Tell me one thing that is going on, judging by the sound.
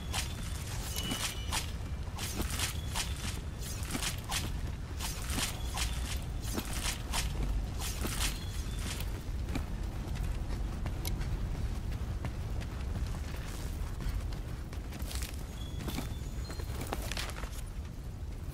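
Blades strike a monster's hide with sharp, rapid hits.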